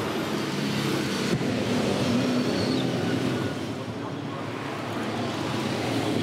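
Race car engines roar as cars drive past.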